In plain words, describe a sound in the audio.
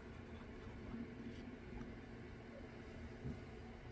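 A small plastic model is set down on a hard surface with a soft knock.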